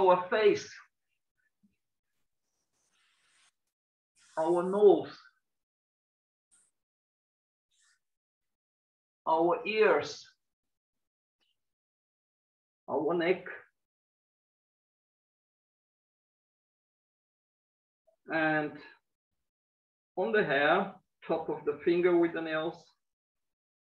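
A man speaks calmly in short phrases with long pauses, heard through a microphone.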